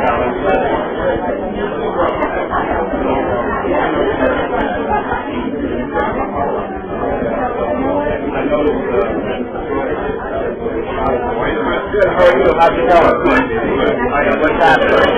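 Several men and women chat at once.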